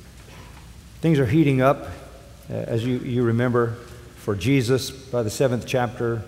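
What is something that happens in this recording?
An elderly man speaks slowly and gravely through a microphone in a large hall.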